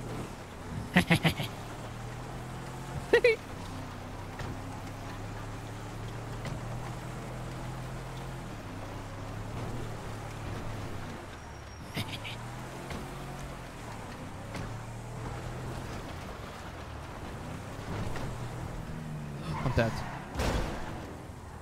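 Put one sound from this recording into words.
A car door thuds open and slams shut.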